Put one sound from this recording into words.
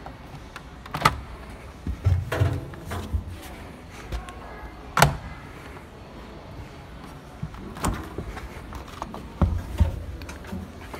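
A washing machine door clicks and thumps.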